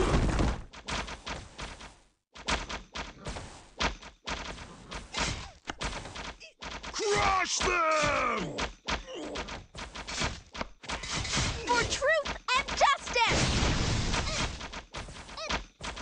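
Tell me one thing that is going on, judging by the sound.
Weapons clash and strike in a busy battle.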